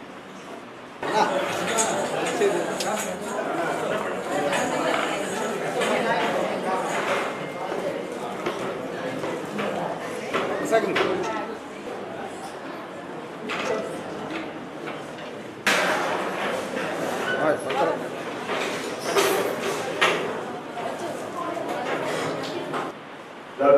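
A crowd of people murmurs and chatters close by.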